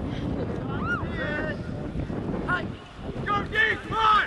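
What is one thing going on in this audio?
Young men call out faintly in the distance.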